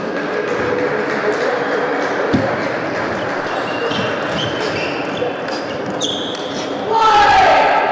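A table tennis ball clicks quickly back and forth off paddles and the table.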